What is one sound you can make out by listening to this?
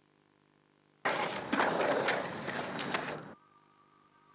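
Skateboard wheels roll and grind along a concrete ledge.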